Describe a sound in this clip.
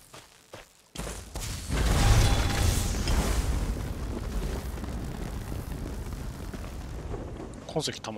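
Lightning crackles and rumbles loudly.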